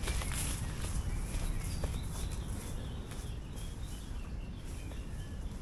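Footsteps swish through grass.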